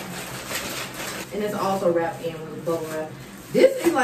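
Plastic wrapping crinkles in hands.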